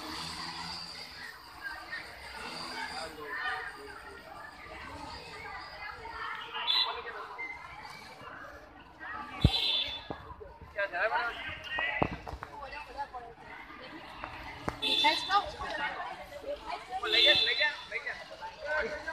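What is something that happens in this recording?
A group of teenagers chatter and call out nearby outdoors.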